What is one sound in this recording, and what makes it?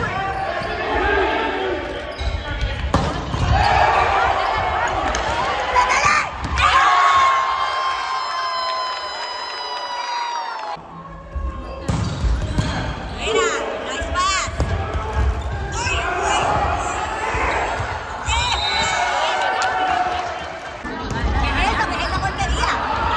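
Players shout and call out in a large echoing gym.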